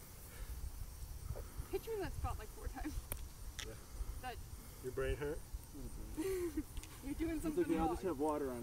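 A young woman talks and laughs nearby.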